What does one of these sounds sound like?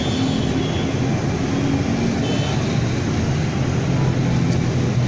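Many motorbike engines hum and buzz steadily as traffic streams along a busy road.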